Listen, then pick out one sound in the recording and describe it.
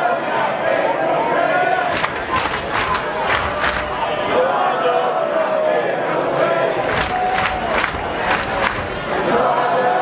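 A live band plays music loudly through loudspeakers in a large hall.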